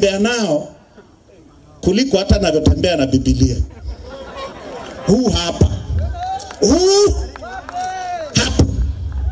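A man speaks forcefully into a microphone over a loudspeaker.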